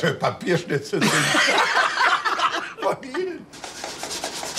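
Men and a woman laugh heartily together.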